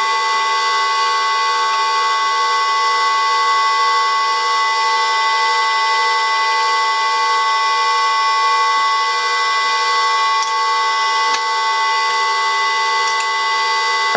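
A wrench clicks against a metal bolt.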